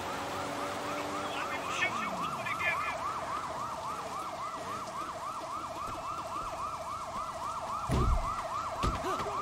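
A police siren wails rapidly nearby.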